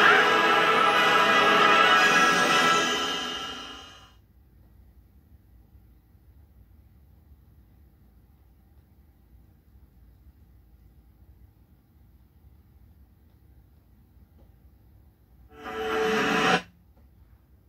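Music plays from a television, then fades out.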